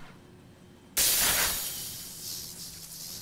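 An energy burst whooshes and crackles.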